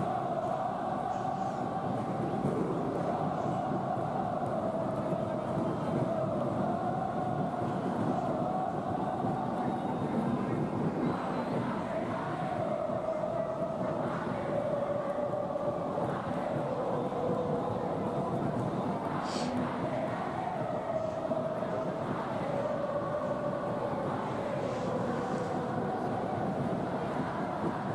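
A large stadium crowd chants loudly in unison, heard through a loudspeaker.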